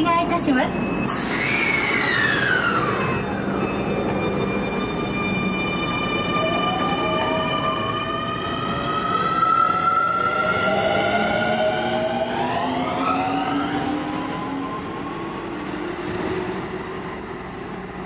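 An electric train's motors whine, gliding up and down in pitch.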